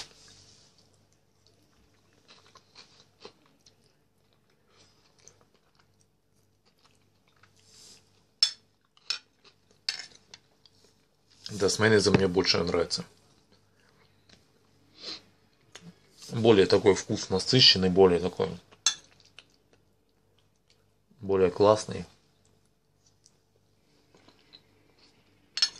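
A man chews and smacks his lips while eating.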